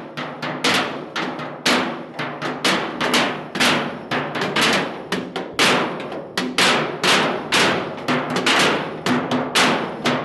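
Men beat sticks on metal barrels in a loud, steady rhythm.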